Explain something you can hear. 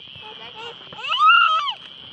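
A young child calls out in a high voice.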